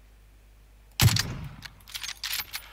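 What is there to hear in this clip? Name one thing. A rifle shot cracks and echoes.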